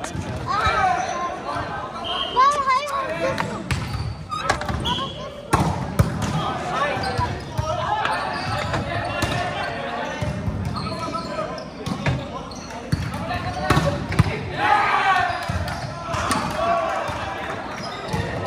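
Sneakers squeak on the hard court floor.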